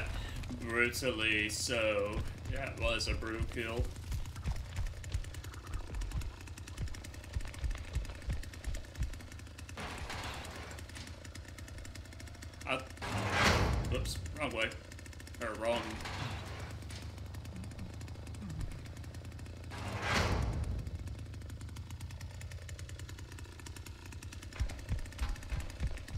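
A chainsaw idles with a low, steady rumble.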